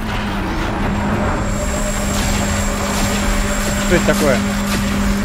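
Crackling energy blasts and booming impacts ring out in a loud video game battle.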